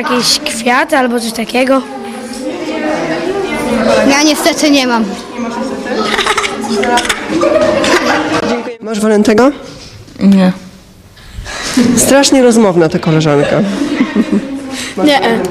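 Children talk and laugh close by.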